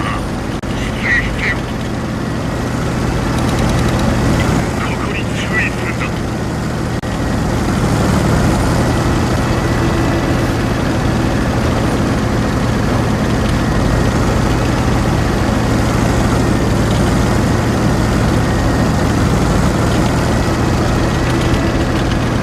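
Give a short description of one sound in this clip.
A tank engine rumbles steadily as the tank drives across rough ground.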